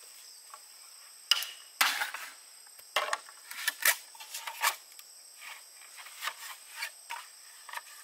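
A machete chops and scrapes at a bamboo pole.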